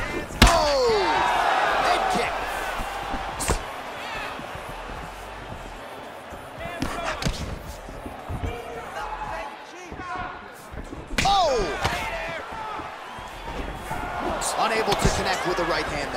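Punches land with heavy thuds.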